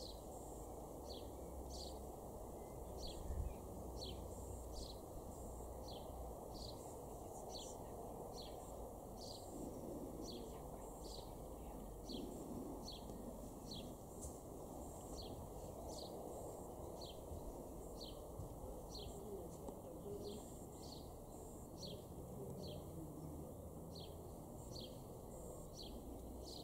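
A sparrow chirps over and over in short, high notes.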